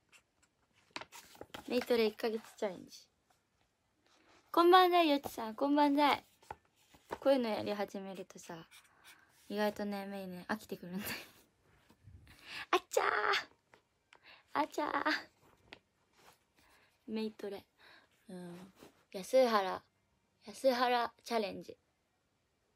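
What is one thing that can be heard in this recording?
A young woman talks close to a microphone, with animation.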